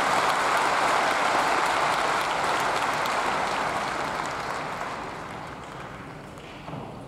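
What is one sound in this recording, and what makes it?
A large crowd applauds, loud at first and then fading.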